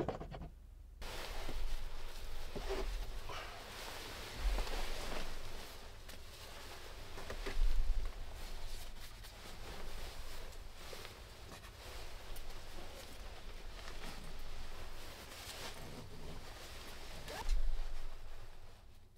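A sleeping bag's nylon fabric rustles and swishes close by as someone shifts inside it.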